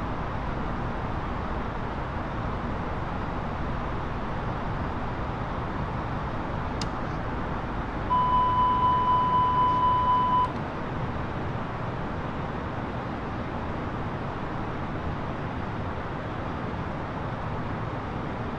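A steady low roar of jet engines fills a cockpit.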